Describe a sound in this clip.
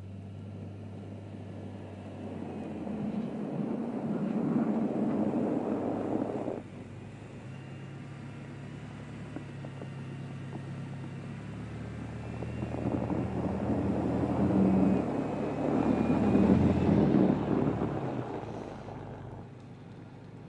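A car engine revs and roars.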